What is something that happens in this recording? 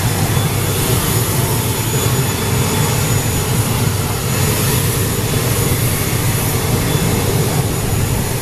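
An aircraft engine drones loudly and steadily nearby.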